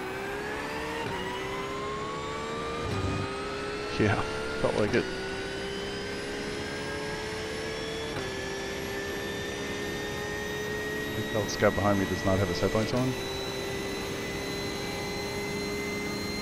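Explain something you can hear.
A race car engine drones steadily, stepping down in pitch at each gear change and then slowly rising again.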